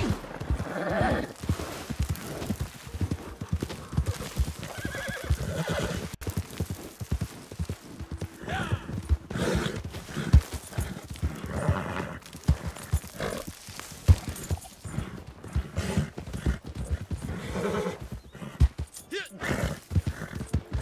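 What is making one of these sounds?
Horse hooves clop steadily on dry ground.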